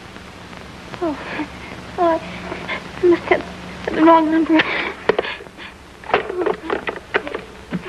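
A young woman speaks urgently into a telephone.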